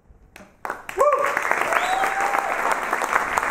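People in an audience cheer and whoop.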